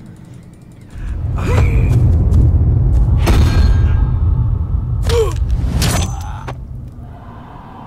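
Two men grunt and strain as they struggle.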